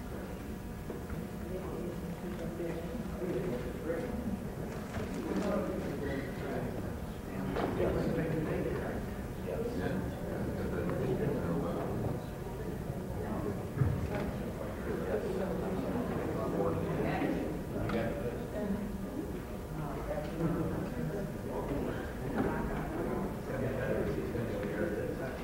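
A crowd of men and women chatter quietly across a large room.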